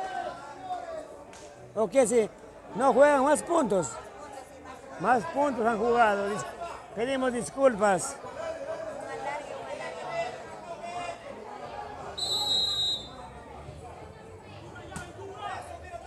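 A crowd chatters and cheers outdoors.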